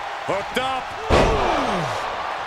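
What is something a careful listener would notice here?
A heavy body slams onto a wrestling mat with a thud.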